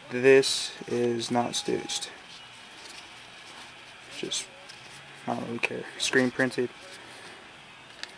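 Fabric rustles as a hand handles a jersey.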